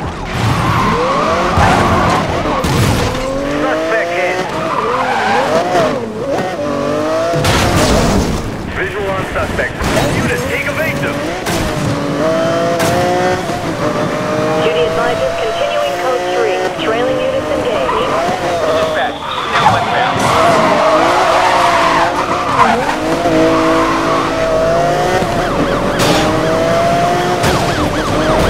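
A sports car engine roars, its pitch rising and falling as it revs and shifts gears.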